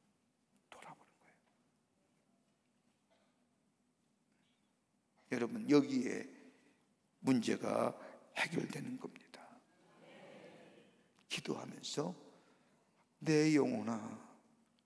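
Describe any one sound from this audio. A man speaks with emphasis through a microphone in a large echoing hall.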